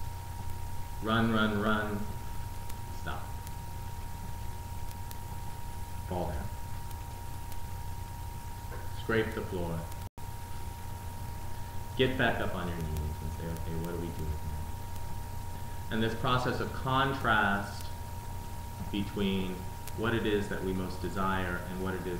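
A man speaks calmly and expressively nearby, in bursts with long pauses.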